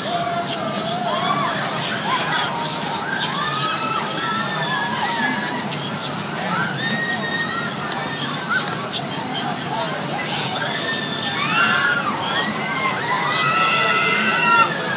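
Riders on a spinning fairground ride scream loudly.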